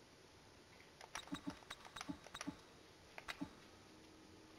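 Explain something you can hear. Soft interface clicks tick as menu options change.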